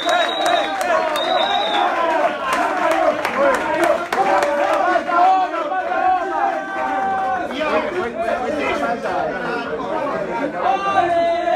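A crowd of young people sings and chants along loudly.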